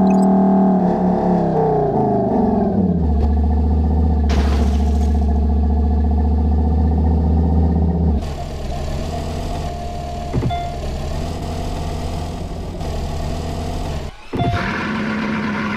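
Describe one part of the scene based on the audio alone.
A powerful car engine drones, its pitch falling as it slows, then idling low.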